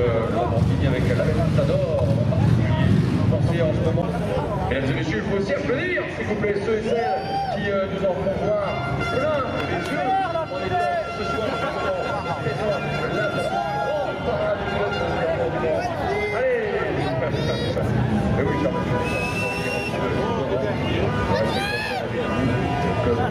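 A large crowd chatters nearby outdoors.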